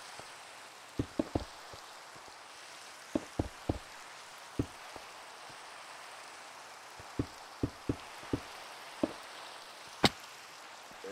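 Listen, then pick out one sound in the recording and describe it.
Stone blocks thud as they are placed.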